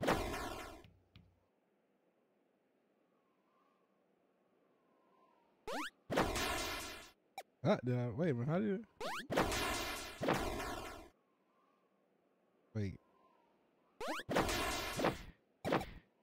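Retro video game sound effects whoosh and chime in short bursts.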